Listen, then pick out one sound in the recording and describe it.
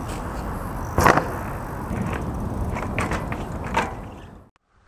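A bicycle clatters as it lands on hard ground.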